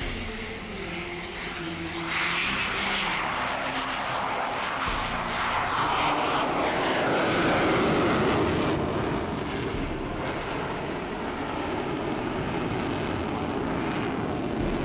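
A jet engine roars loudly overhead, rising and falling in pitch as the jet passes and turns.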